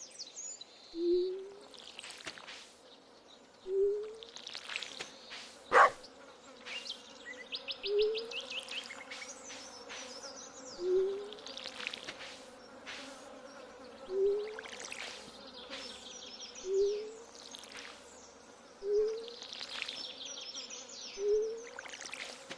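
Water splashes from a watering can onto soil in short bursts.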